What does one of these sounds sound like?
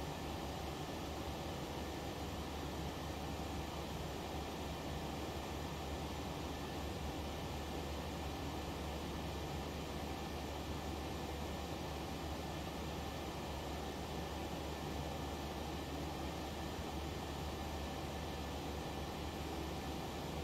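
Jet engines hum steadily in a cockpit.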